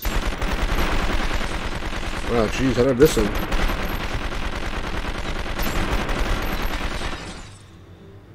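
Gunshots crack rapidly in a video game.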